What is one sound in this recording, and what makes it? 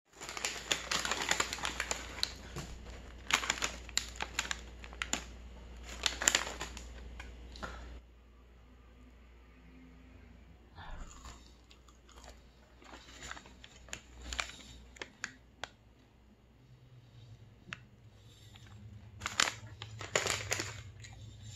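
A paper bag crinkles and rustles close by.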